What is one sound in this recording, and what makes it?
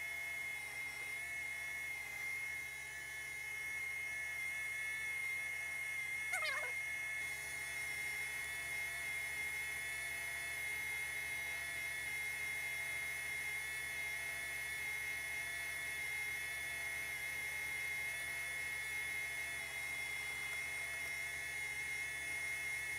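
A sewing machine hums and clatters as it stitches.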